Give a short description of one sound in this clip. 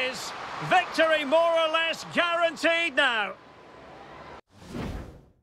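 A crowd cheers in a large stadium.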